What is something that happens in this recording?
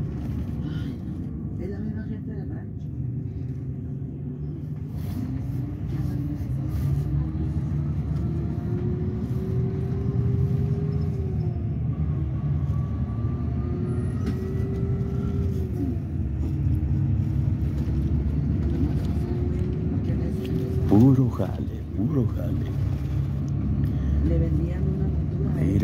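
A vehicle engine hums steadily from inside, with tyres rumbling on the road.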